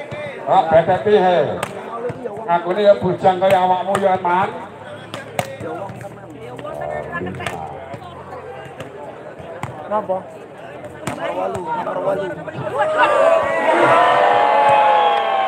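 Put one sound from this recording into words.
Young women on the court shout and call out to each other outdoors.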